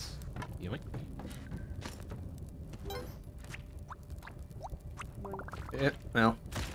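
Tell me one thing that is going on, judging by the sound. Video game sound effects blip and chirp.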